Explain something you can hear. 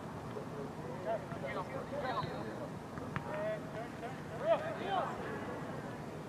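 Young men shout to each other across an outdoor field, heard from a distance.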